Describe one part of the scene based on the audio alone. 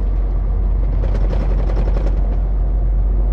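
An oncoming truck rushes past with a brief whoosh.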